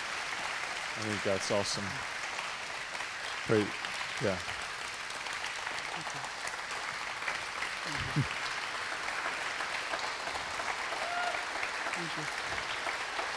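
A man speaks slowly and softly through a microphone in a large room, with long pauses.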